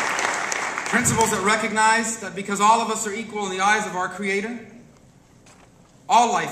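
A man speaks through a microphone in a large hall, giving a speech with emphasis.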